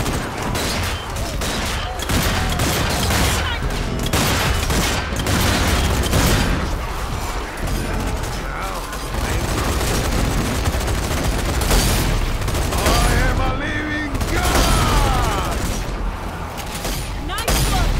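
Gunshots crack loudly again and again.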